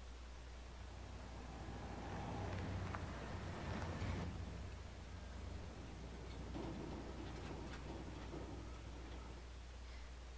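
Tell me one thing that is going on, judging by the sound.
A pickup truck's engine rumbles as the truck drives up and stops.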